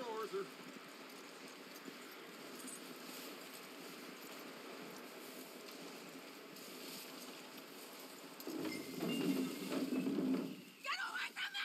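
A horse's hooves thud in snow.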